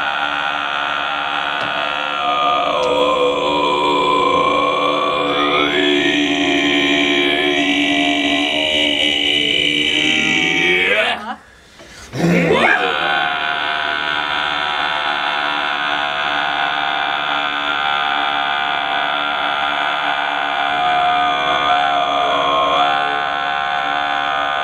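A man sings loudly and with feeling, close by.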